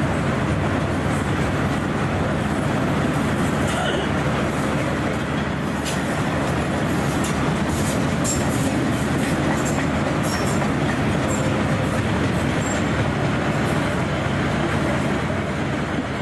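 Train wheels squeal and click on the track.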